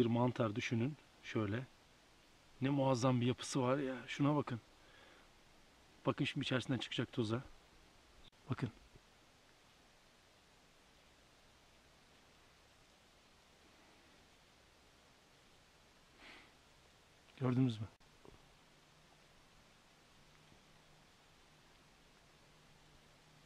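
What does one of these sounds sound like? Fingers peel and crumple a dry husk.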